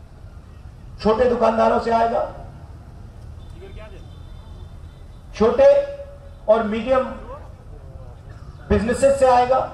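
A man speaks forcefully into a microphone over loudspeakers, outdoors.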